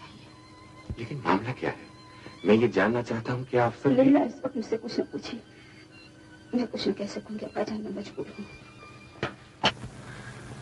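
A young woman speaks with feeling.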